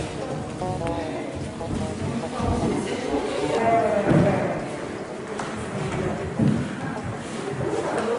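Bare feet thump and shuffle on a wooden floor.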